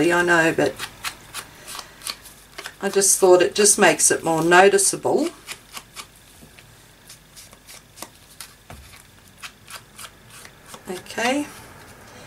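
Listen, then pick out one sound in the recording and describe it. An ink blending tool dabs and rubs on a paper tag.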